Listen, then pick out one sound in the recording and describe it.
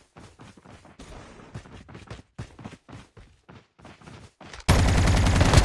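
Footsteps run quickly over ground.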